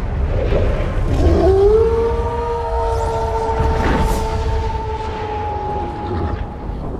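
A wolf howls long and loud.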